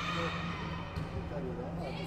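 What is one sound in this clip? A volleyball is slapped hard in a large echoing hall.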